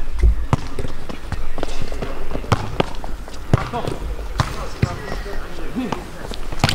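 A football is kicked with sharp thuds on an outdoor pitch.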